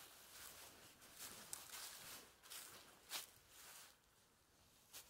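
Footsteps crunch and rustle through dry leaves.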